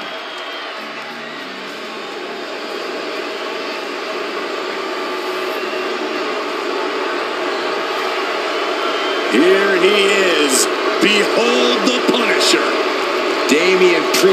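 A large crowd roars and cheers in a big echoing arena, growing louder.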